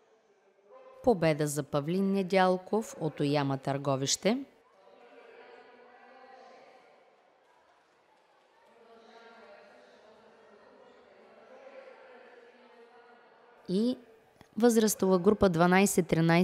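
A man announces loudly over a loudspeaker.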